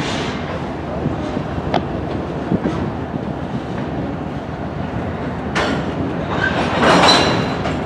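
Freight cars rumble and clank steadily along the rails.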